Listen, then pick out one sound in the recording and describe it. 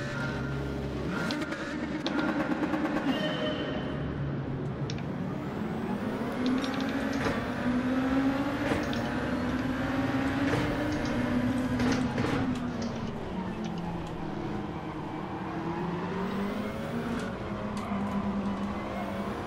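A racing car engine revs high and climbs through the gears.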